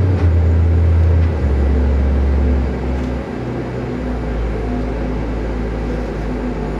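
Electronic synthesizer music plays with deep droning bass tones.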